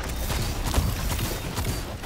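A sword swings with a loud whoosh and crash.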